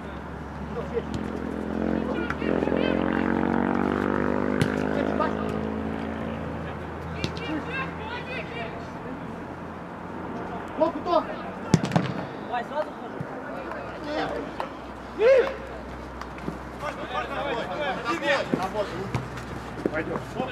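A football thumps as players kick it.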